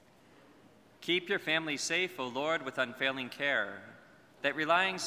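A man chants solemnly through a microphone in a large echoing hall.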